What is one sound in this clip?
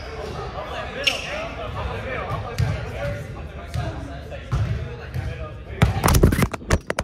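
Young men talk and call out in a large echoing gym.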